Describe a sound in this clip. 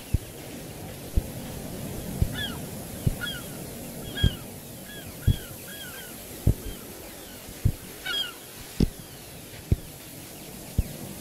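Footsteps crunch steadily on sand.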